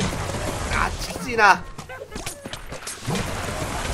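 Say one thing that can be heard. Weapons strike with quick, sharp hits.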